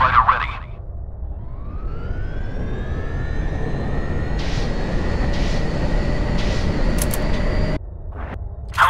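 A jet engine roars past with a rising whine.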